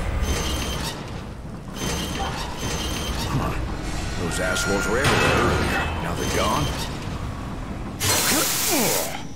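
Footsteps clank quickly across a metal floor.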